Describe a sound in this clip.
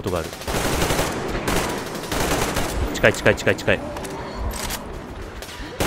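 A rifle fires rapid bursts of shots at close range.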